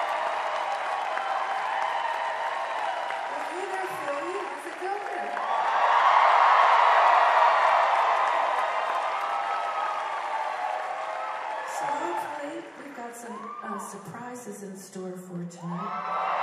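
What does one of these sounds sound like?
A woman speaks into a microphone, amplified through loudspeakers in a large hall.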